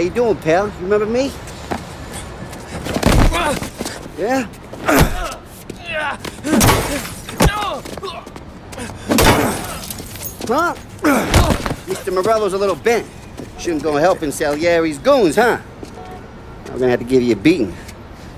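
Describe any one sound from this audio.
A young man speaks mockingly and threateningly up close.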